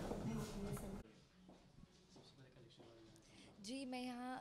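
A young woman speaks calmly into microphones close by.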